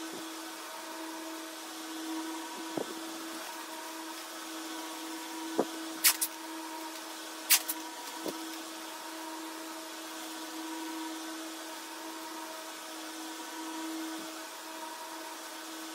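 Soil crumbles and patters.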